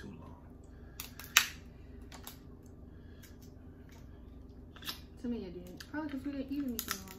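Crab shells crack and clatter as people eat.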